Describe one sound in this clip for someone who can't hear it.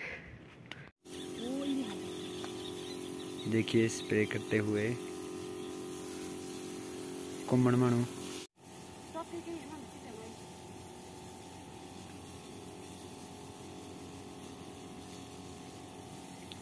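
A knapsack sprayer hisses steadily as it sprays plants.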